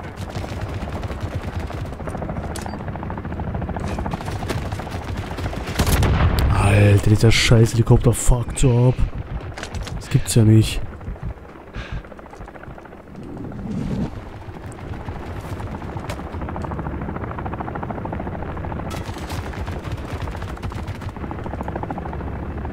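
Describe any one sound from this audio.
A helicopter's rotors thump and drone steadily nearby.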